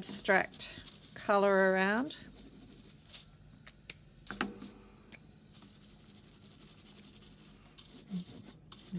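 Aluminium foil crinkles and rustles as hands press and fold it.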